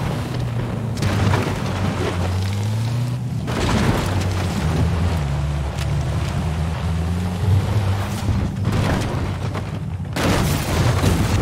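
Branches and bushes crash and snap against a car.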